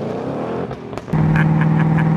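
A man laughs inside a car.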